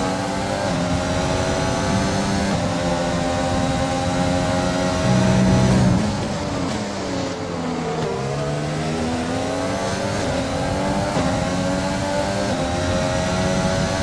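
A racing car engine screams at high revs, climbing through gears with quick shifts.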